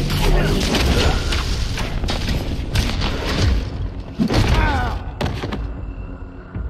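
Lightsabers clash and hum in a game fight.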